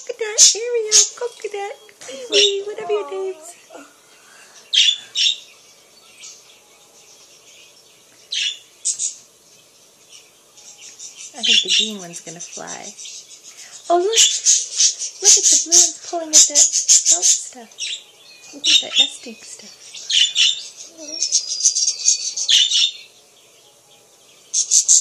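Budgies chirp and chatter in quick, high bursts.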